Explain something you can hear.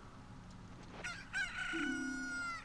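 A chicken clucks.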